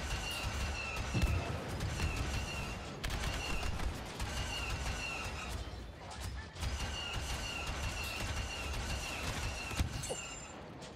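Explosions boom nearby.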